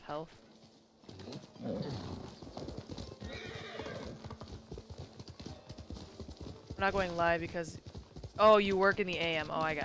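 Horse hooves thud on the ground.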